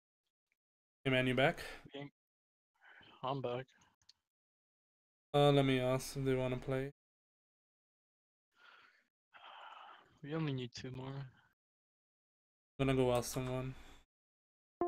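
A young man speaks casually into a microphone in short bursts with pauses.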